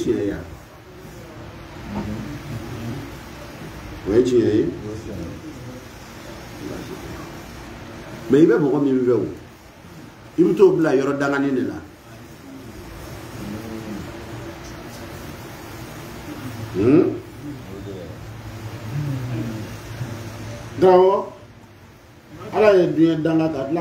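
A man speaks with emphasis into a microphone, heard through a loudspeaker in an echoing room.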